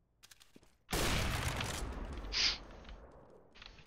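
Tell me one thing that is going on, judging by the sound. A rifle fires a single loud shot that rings out.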